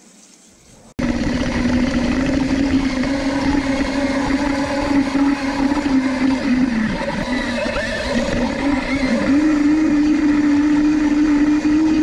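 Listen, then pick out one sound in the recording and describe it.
Electric motors whine loudly, dipping and rising in pitch as a small tracked vehicle drives.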